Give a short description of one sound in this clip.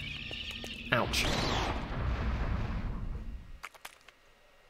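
A magical whooshing effect swells and fades.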